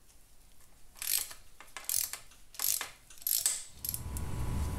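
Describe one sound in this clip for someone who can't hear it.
A wrench clicks and clinks against metal engine parts.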